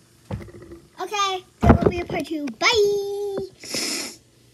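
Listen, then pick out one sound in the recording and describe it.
A young girl speaks close up with animation, her voice rising and falling.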